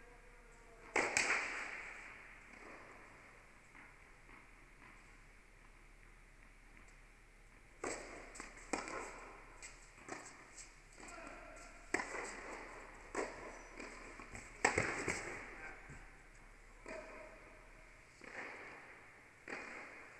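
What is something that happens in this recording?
Tennis balls are struck with rackets, echoing in a large indoor hall.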